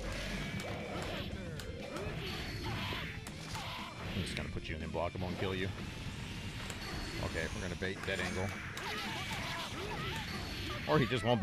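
Fast game music plays throughout.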